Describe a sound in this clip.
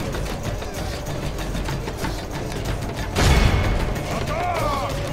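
Weapons clash and clatter in a busy battle.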